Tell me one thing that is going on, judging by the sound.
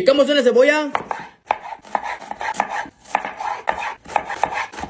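A knife chops through an onion on a wooden board with quick, repeated knocks.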